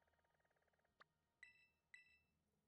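Short electronic menu chimes ring out twice.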